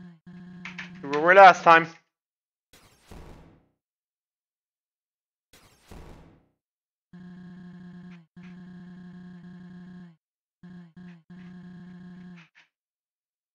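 Rapid low electronic blips chatter in bursts, like game dialogue text typing out.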